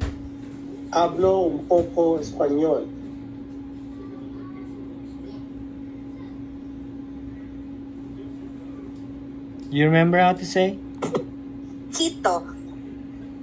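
A man speaks over an online call.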